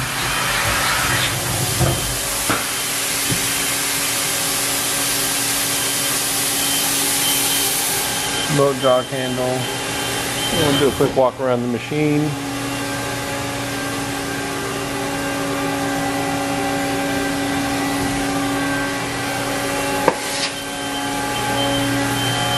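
A large machine hums steadily.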